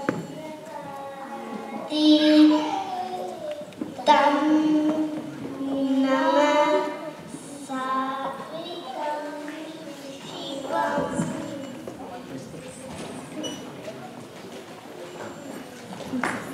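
A young girl speaks clearly through a microphone over loudspeakers in an echoing hall.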